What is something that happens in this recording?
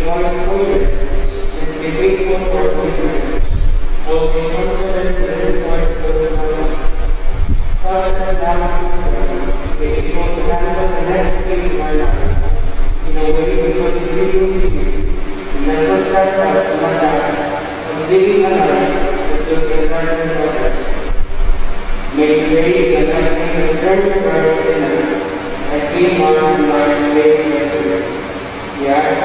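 A young man sings slowly into a microphone in a large echoing hall.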